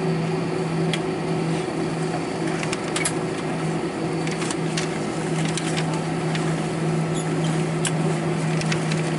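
A jet engine hums steadily, heard from inside an aircraft cabin as it taxis.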